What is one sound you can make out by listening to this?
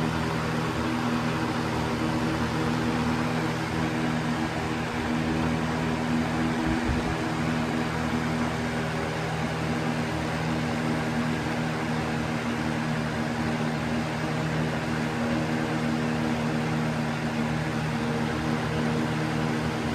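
A box fan whirs steadily with a low motor hum and rushing air.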